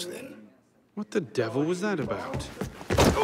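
A young man asks a question with surprise.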